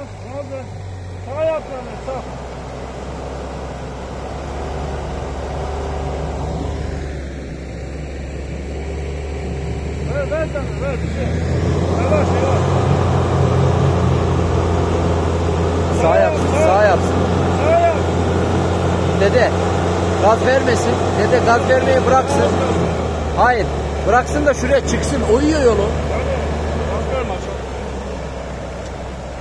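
A vehicle engine rumbles steadily and revs harder.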